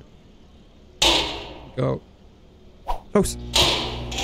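A metal gas canister clunks against a microwave.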